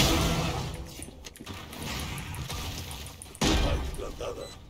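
A blade swishes and a weapon clanks as it is drawn.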